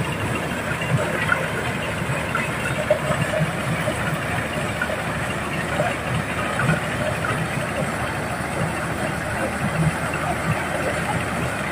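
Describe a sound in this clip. Corn kernels clatter as they pour into a machine.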